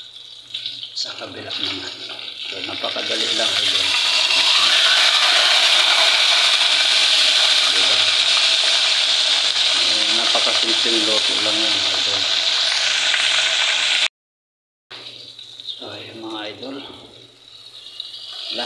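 Fish sizzles and crackles loudly in hot oil.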